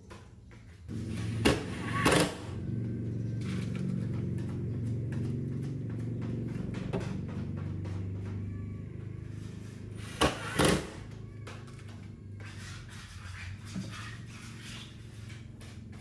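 A cordless drill whirs as it drives screws.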